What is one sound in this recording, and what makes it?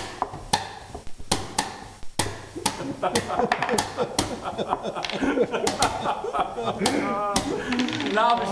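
Chess pieces clack quickly on a wooden board.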